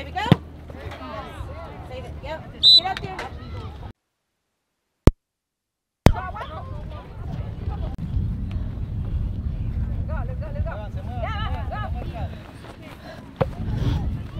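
Women and men on the sidelines talk and call out nearby.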